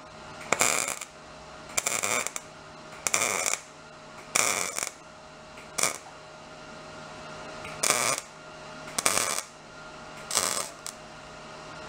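A welder crackles and buzzes in short, repeated bursts.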